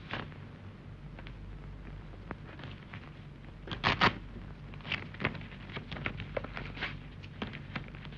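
Paper rustles as it is handed over and handled.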